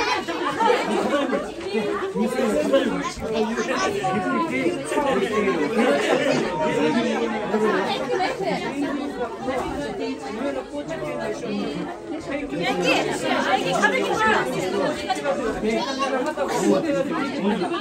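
Young children shout and squeal excitedly.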